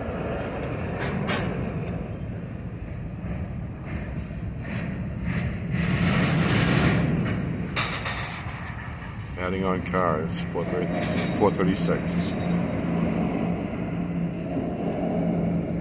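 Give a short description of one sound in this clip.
Freight car wheels clack and squeal over the rails.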